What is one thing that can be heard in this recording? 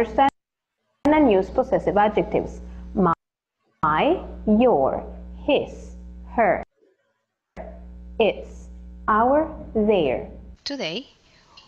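A young woman speaks calmly and clearly, as if through a recording played on a loudspeaker.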